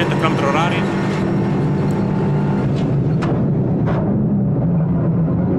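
A race car engine roars steadily from inside the cabin.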